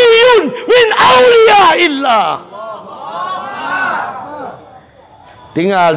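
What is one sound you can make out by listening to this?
A middle-aged man preaches loudly and passionately through a microphone.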